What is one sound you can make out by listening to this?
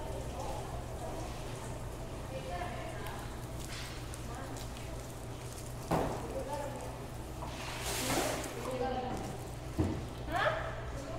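Young women talk casually nearby.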